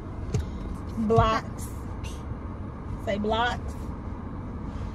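A small child squeals and babbles loudly.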